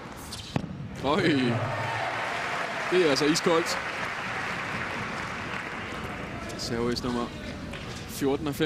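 A crowd cheers and applauds loudly in a large arena.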